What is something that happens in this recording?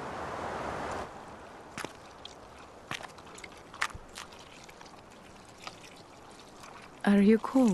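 Footsteps click on stone.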